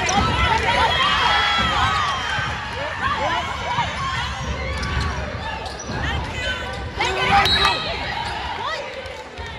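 Young women shout and call out across a large echoing gym.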